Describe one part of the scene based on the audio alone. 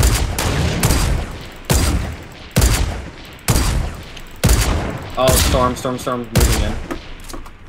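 A sniper rifle fires loud echoing shots again and again.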